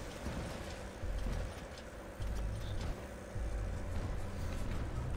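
Heavy metal footsteps of a giant robot thud and rumble.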